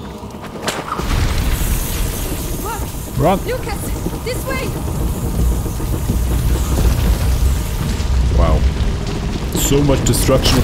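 A fire roars and crackles loudly.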